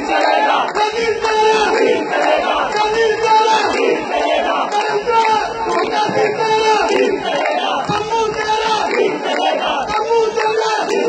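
A dense crowd chants and shouts loudly together, close by.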